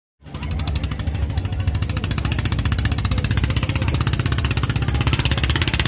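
A small boat motor putters across the water.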